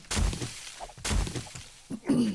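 An axe thuds twice into soft ground.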